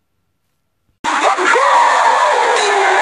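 A man screams loudly and wildly, close by.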